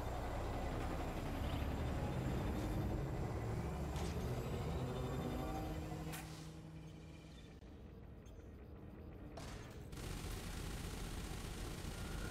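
A spaceship engine rumbles low and steady, quieting for a few seconds midway.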